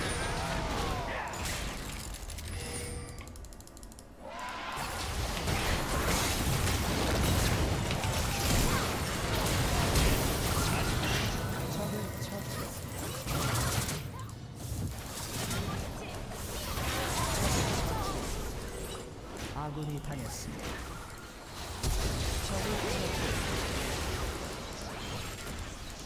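A young person talks with animation into a microphone.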